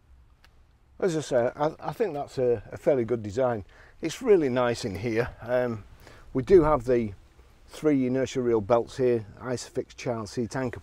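A man talks calmly and closely, as if to a microphone.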